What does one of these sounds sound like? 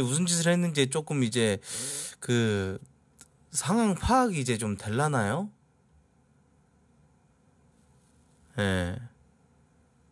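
A young man speaks with animation through a microphone, close by.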